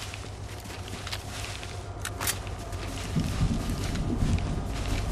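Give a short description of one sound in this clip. Leafy branches rustle as someone pushes through a bush.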